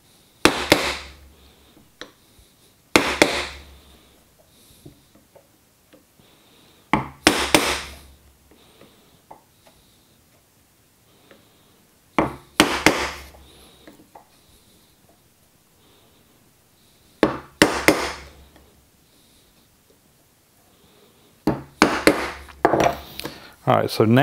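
A chisel scrapes and pares wood.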